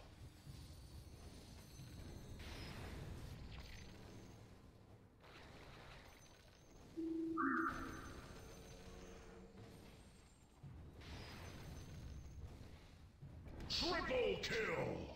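Magic spells and weapons clash in a game battle.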